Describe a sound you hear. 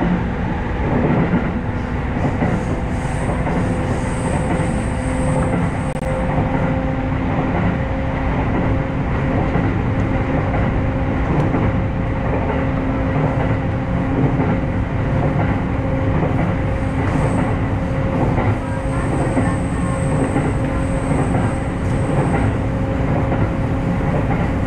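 A train's motor hums at a steady pitch.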